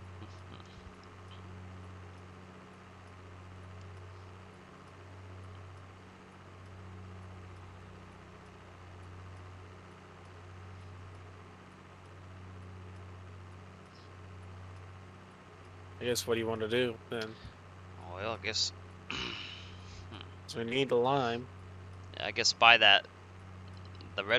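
A tractor engine hums steadily at low speed.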